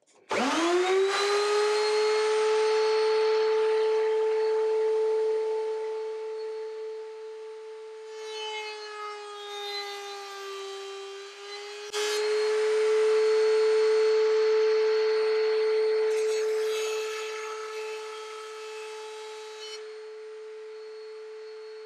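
A power router motor spins up and whines steadily.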